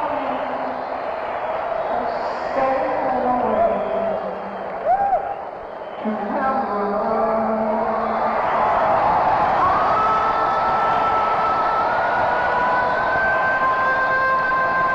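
An electric guitar plays loudly at a live rock concert.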